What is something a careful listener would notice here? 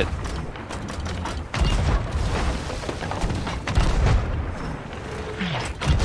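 A cannonball bursts in the water with a loud crash.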